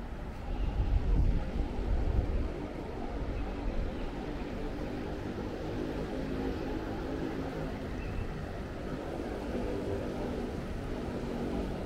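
A fountain splashes and trickles.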